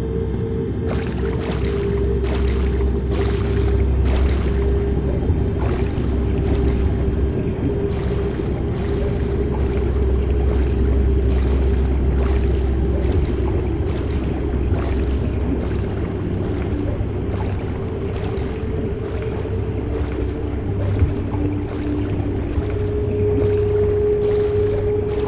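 Water drones with a low, steady underwater rumble.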